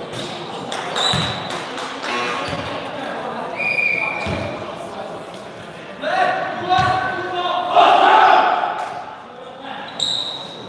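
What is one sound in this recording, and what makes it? Sneakers squeak sharply on a hard floor in a large echoing hall.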